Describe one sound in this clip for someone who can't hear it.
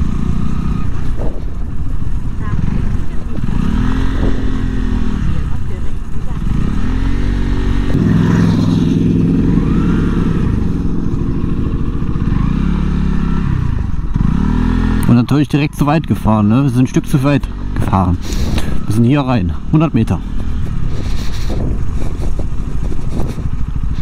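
A motorcycle engine revs up and down as it rides along.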